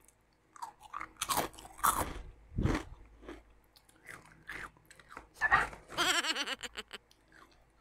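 A plastic snack bag crinkles.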